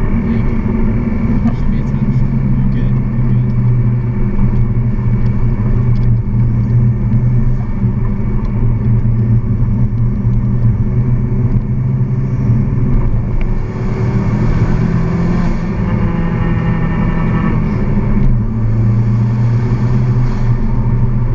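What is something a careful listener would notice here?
A car engine drones steadily inside the cabin.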